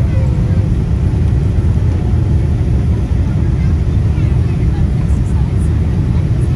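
The turbofan engines of an airliner roar as a deep, steady rumble heard from inside the cabin on descent.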